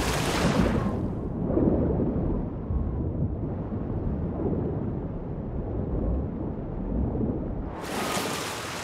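Water rushes and churns in a muffled, underwater rumble.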